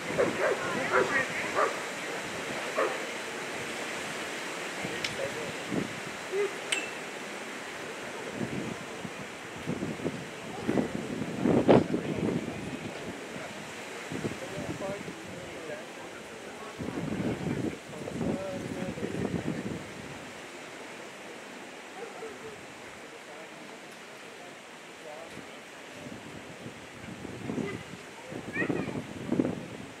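A man talks outdoors.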